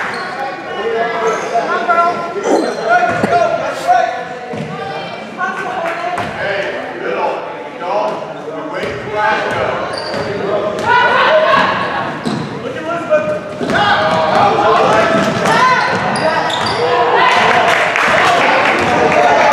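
A crowd of spectators talks and cheers throughout in an echoing gym.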